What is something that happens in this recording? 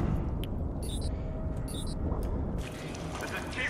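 Water gurgles and churns in a muffled rush.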